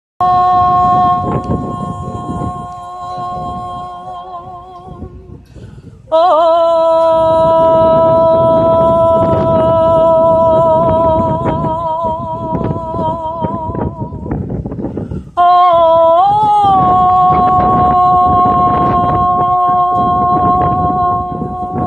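A man chants long, steady notes through loudspeakers outdoors, pausing briefly between them.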